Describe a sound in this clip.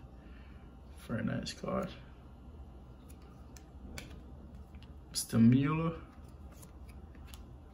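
Glossy trading cards slide off a stack in a hand.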